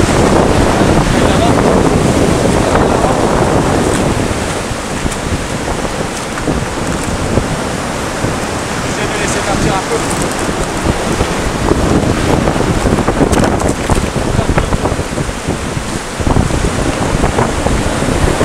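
Waves crash and surge against rocks close by.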